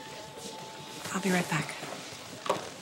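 A middle-aged woman speaks emotionally nearby.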